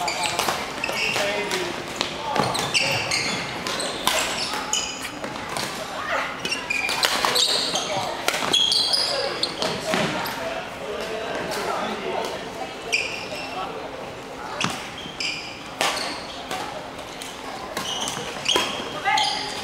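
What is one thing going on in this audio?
Badminton rackets smack shuttlecocks in a large echoing hall.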